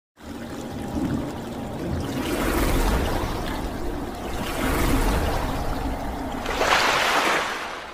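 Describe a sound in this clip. Water splashes and swirls in surging rushes.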